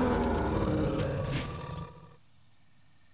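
A large beast growls and roars loudly.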